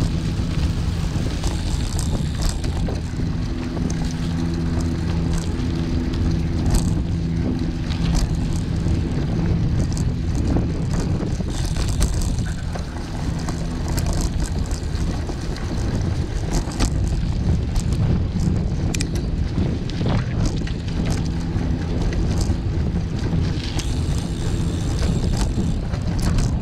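Tyres rumble and crunch over a rough dirt road.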